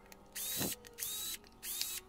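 A power drill whirs briefly as it drives a screw.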